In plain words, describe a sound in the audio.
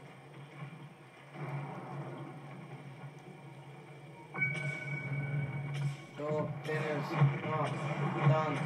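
Video game building and action effects play through a loudspeaker.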